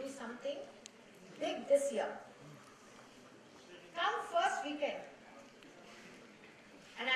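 A woman speaks into a microphone in short bursts, heard through a loudspeaker.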